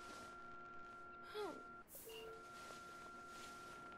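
Bedsheets rustle softly as someone gets out of bed.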